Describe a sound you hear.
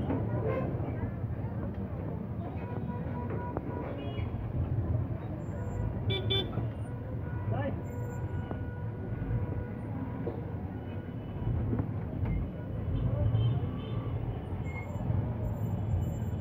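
Electric rickshaws hum and rumble slowly through busy street traffic.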